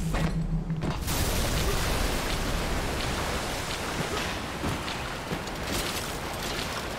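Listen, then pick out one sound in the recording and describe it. Rushing water roars loudly.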